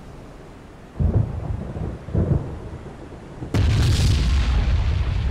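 Heavy explosions boom and roar over the sea.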